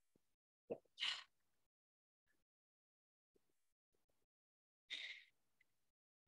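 A woman breathes out audibly.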